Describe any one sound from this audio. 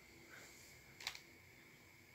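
A fingertip taps lightly on a touchscreen.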